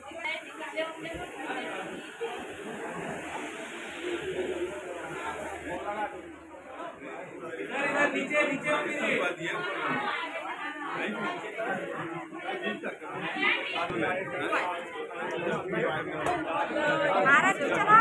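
A crowd of men and women chatters nearby in an echoing space.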